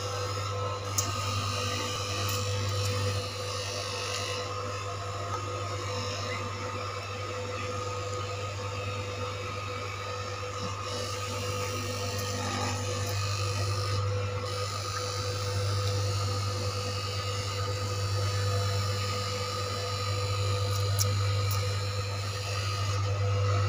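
An electric cutting machine hums steadily.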